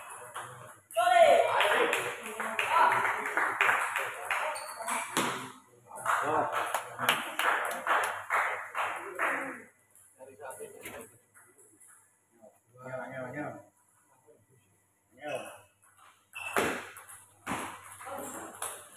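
A table tennis ball clicks back and forth between paddles and the table.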